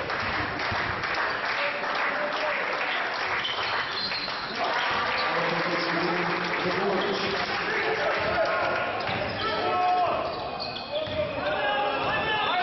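A small crowd murmurs and calls out in a large echoing hall.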